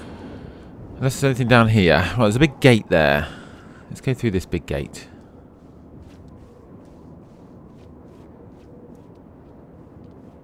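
Footsteps run quickly across pavement.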